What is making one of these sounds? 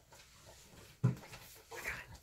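A crayon taps on a wooden table.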